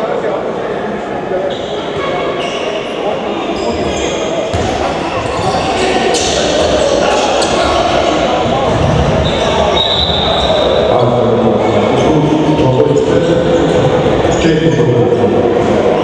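A handball bounces on the floor.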